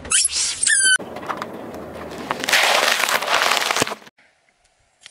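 A car tyre rolls over and crushes crisp lettuce with a loud crunch.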